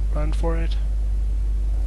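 A young man speaks briefly through a headset microphone.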